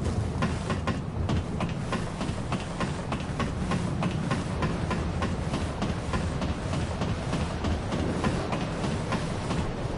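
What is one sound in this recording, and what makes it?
A ladder creaks and taps as someone climbs.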